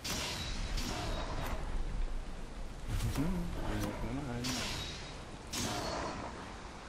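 Weapon blows strike a creature with sharp impacts.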